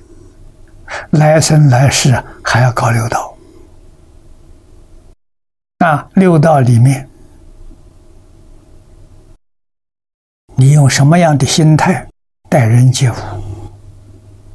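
An elderly man speaks calmly and slowly into a close microphone, in short phrases with pauses.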